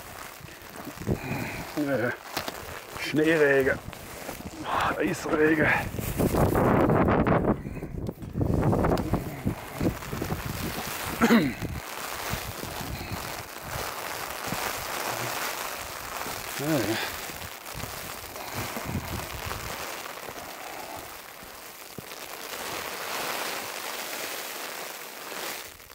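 Rain patters steadily on an umbrella overhead.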